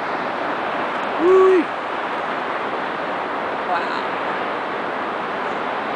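A waterfall roars steadily as water crashes down a cliff.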